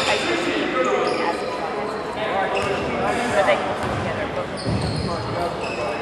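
Voices of young men and spectators call out and chatter, echoing in a large gym.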